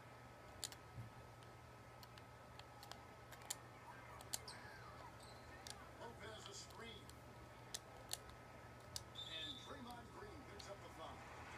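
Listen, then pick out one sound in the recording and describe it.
Controller buttons click sharply.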